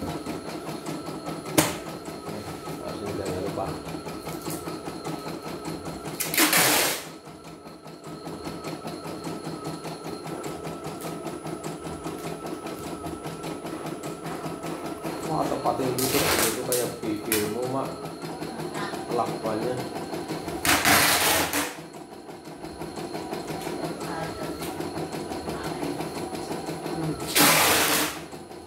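An embroidery machine stitches with a fast, steady rattling hum.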